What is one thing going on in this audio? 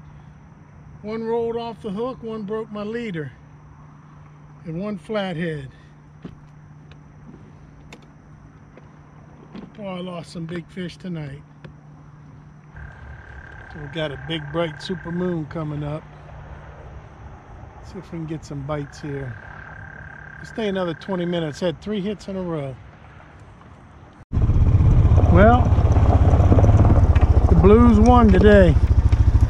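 A man speaks calmly close by, outdoors.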